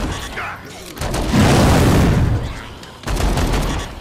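Heavy blows strike bodies with wet thuds.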